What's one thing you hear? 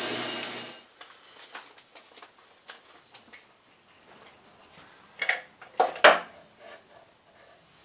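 Metal clamps clatter and knock as they are handled.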